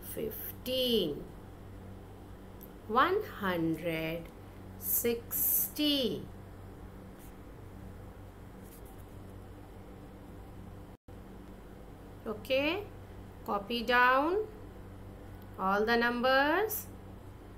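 A woman speaks clearly and slowly into a microphone, as if teaching.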